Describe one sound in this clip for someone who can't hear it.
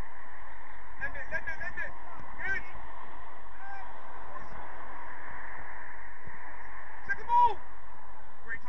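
Men shout across an open field, heard from a distance.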